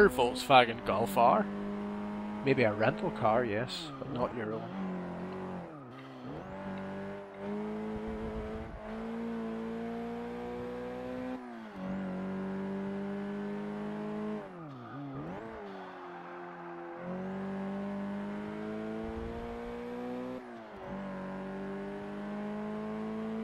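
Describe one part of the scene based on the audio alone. A car engine revs hard, rising in pitch and dropping sharply with each gear change.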